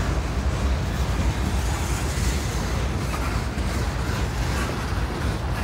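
A freight train rumbles steadily past nearby.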